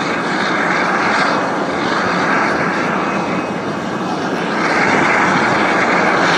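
Jet engines roar steadily as an airliner rolls along a runway, growing louder.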